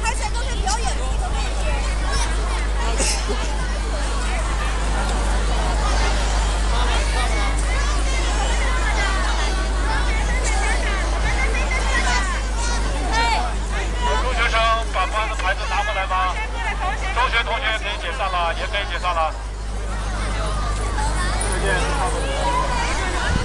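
A large crowd of men and women chatters all around, close by and outdoors.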